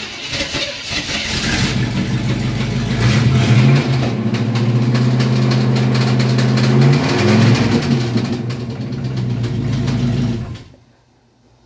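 A car engine runs loudly and revs, then cuts off.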